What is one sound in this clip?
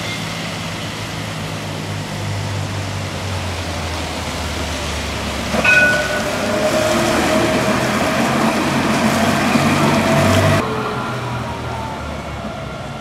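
A tram hums and rumbles past outdoors.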